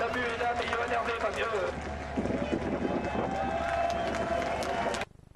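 Racing car engines roar loudly as the cars speed past.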